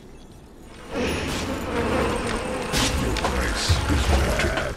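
Game combat clashes with hits and spell effects.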